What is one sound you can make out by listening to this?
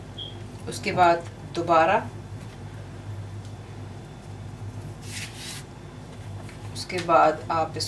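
Hands fold and press soft dough.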